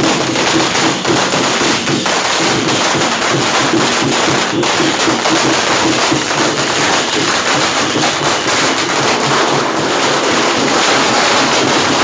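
Firecrackers crackle and pop rapidly nearby.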